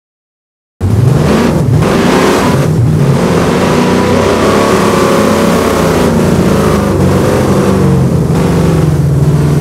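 A truck engine revs and roars.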